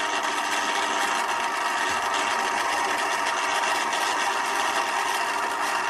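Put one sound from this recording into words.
A welding machine hums steadily.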